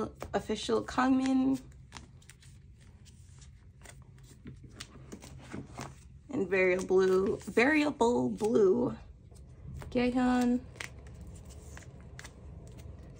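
Plastic sleeves rustle and crinkle as cards are slid in and out.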